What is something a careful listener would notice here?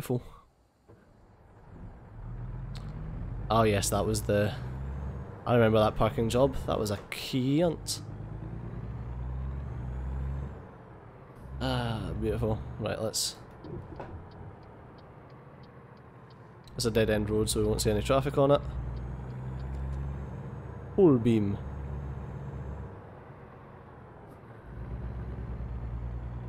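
A truck engine rumbles steadily as the truck drives.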